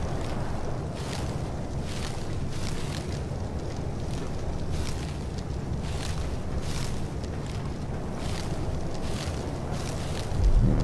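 Leafy plants rustle sharply as they are pulled up, again and again.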